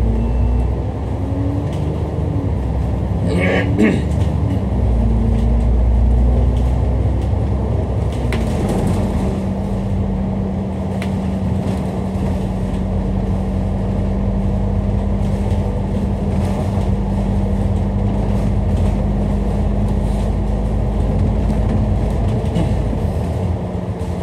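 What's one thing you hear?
Wind rushes past loudly, as if outdoors.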